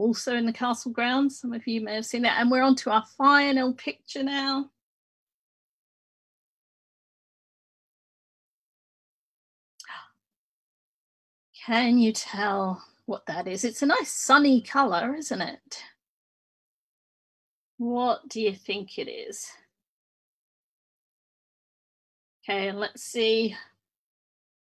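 A woman talks calmly over an online call, with pauses.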